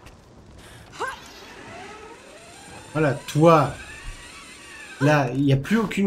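A zip line hums and whirs as a climber slides down a cable.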